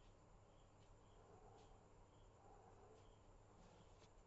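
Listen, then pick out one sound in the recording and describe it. A pen scratches softly along paper.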